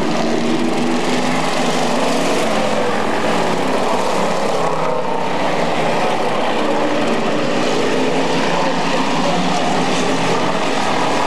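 Several race car engines roar loudly around a track.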